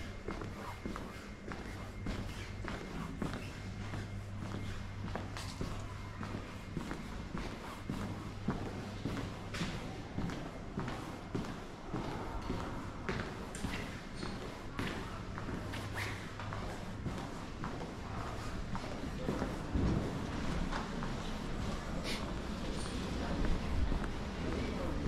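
Footsteps tap on a hard floor in an echoing passage.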